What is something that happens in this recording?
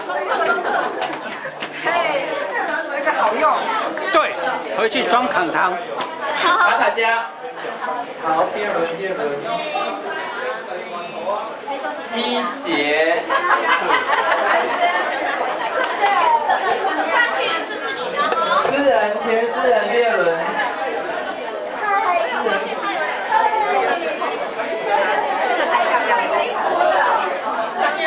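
A crowd of men and women chatters all around in a busy indoor room.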